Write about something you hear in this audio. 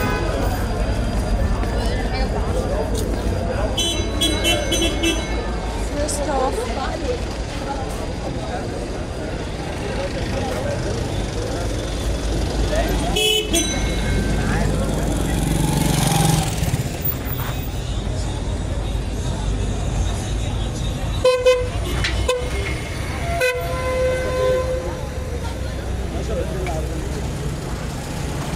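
Traffic hums steadily along a busy street outdoors.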